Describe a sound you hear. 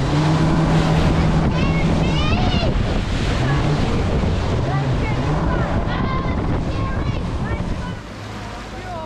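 Waves crash and spray against a speeding boat's hull.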